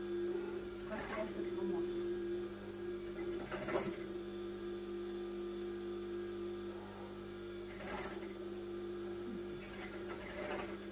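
A sewing machine hums steadily as it stitches.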